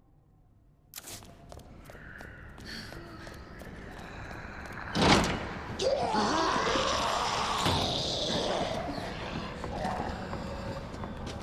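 Footsteps walk across a hard floor.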